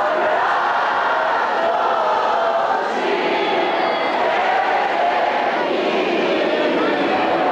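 A large outdoor crowd of men and women sings together loudly.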